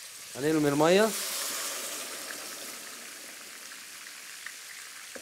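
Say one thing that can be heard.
Water pours into a pot with a splashing rush.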